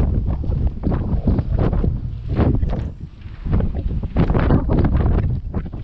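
Strong wind gusts roar and buffet outdoors.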